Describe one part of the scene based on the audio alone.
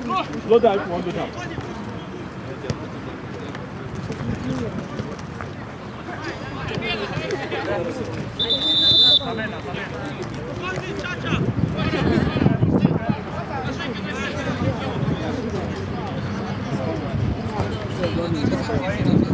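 Young men shout and call to each other outdoors across an open field.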